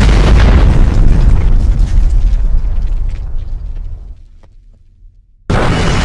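A huge explosion roars with a deep rumble and slowly fades.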